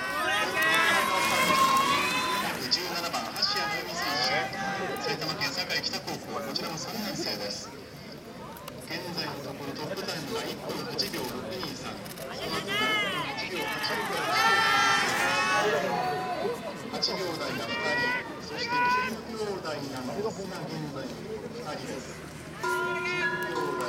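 A crowd of spectators shouts and cheers nearby.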